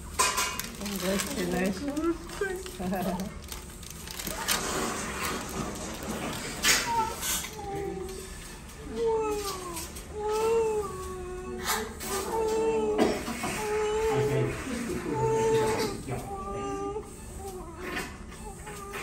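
A newborn baby cries in short, wavering wails.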